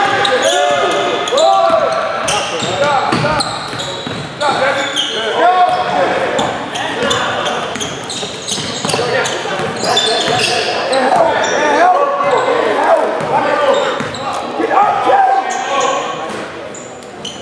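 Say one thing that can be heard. Sneakers squeak sharply on a hardwood court in a large echoing gym.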